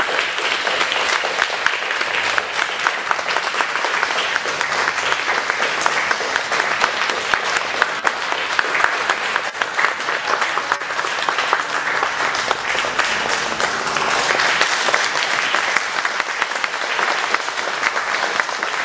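A crowd claps and applauds steadily in a large echoing hall.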